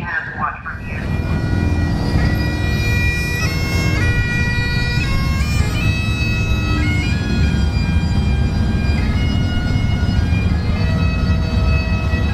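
Motorcycle engines idle with a low rumble.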